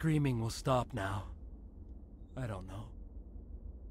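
A man speaks in a low, strained voice.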